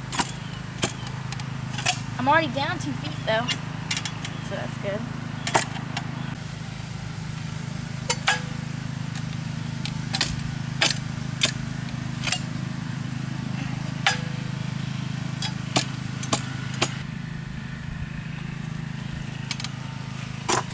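A post hole digger thuds and scrapes into soil again and again.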